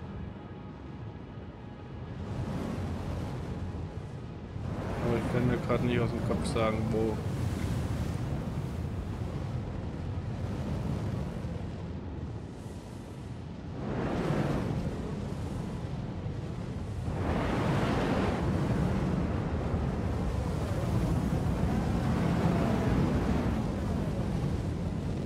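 A spacecraft's engines roar steadily, swelling in loud surges.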